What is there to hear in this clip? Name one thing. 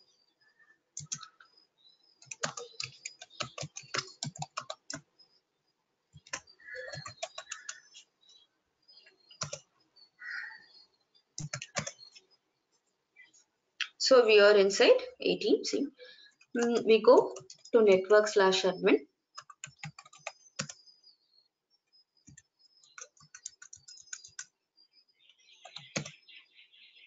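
Keys on a computer keyboard click in quick bursts.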